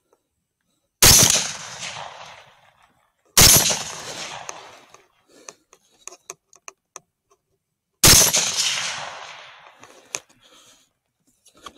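A rifle fires loud shots that echo away outdoors.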